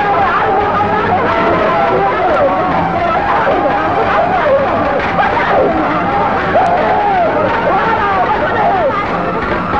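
A man wails and sobs in distress.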